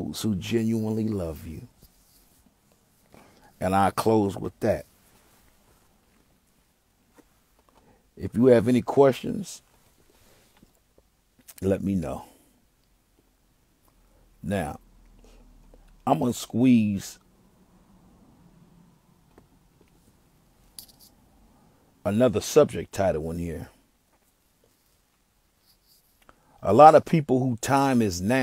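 A young man talks close to a phone microphone, in short bursts with pauses.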